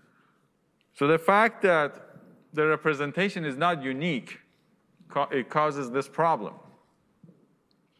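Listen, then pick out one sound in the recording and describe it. A man lectures through a microphone in a large room.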